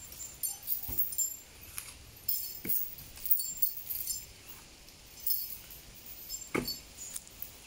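A heavy log knocks and thuds against the ground.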